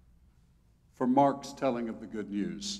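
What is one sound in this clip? An elderly man sings out in a resonant hall.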